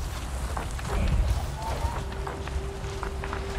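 Thunder rumbles in the distance.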